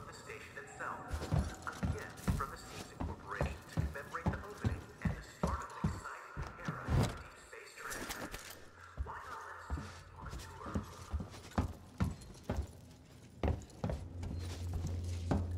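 Footsteps thud on a hard metal floor at a steady walking pace.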